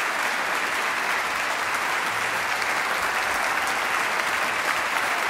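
An orchestra plays loudly in a large concert hall.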